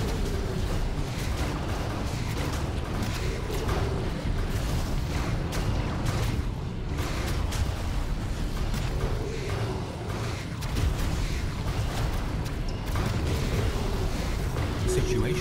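Laser weapons zap and blast repeatedly in a space battle.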